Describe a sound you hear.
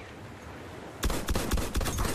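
Rapid gunfire from a submachine gun bursts out close by.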